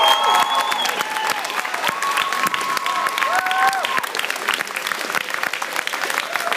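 A crowd claps along to the music.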